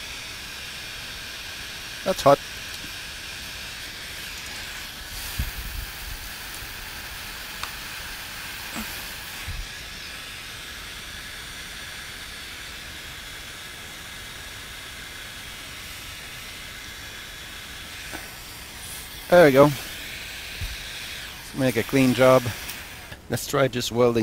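A heat gun blows with a steady whooshing hiss.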